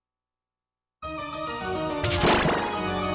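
Lively electronic game music plays.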